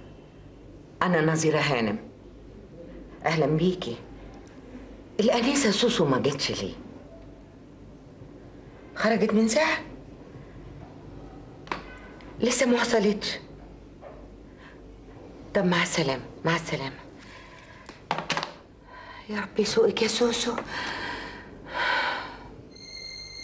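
A middle-aged woman speaks on a telephone in short bursts, with pauses between her lines.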